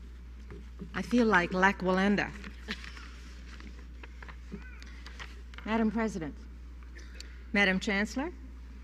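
A woman speaks into a microphone in a large hall.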